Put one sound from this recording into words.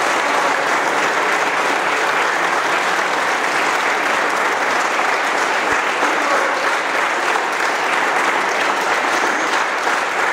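A violin plays in a large echoing hall.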